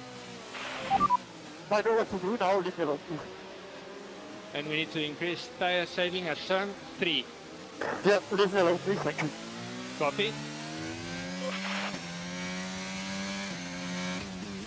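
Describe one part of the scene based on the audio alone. A racing car engine hums at low speed, then revs up and rises in pitch as the car accelerates.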